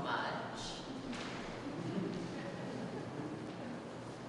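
A woman answers calmly.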